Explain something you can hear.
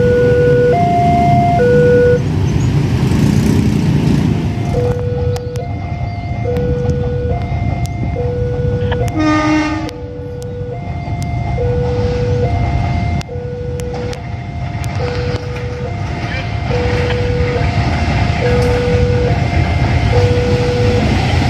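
A level crossing bell rings in a steady repeating two-tone pattern.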